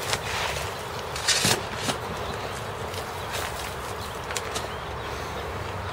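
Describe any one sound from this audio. Soil pours off a shovel with a soft rush.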